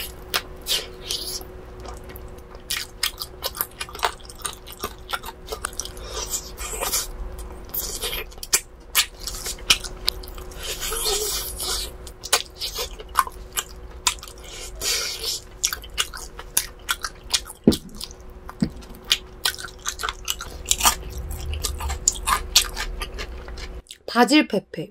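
A young woman chews and slurps food close to a microphone with wet smacking sounds.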